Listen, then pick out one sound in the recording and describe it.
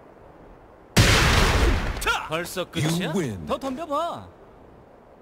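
A heavy blow lands with a crackling burst.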